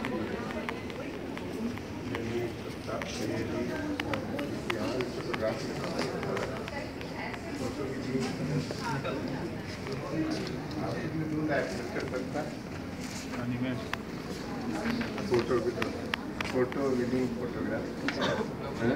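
Several men talk nearby in a room with a slight echo.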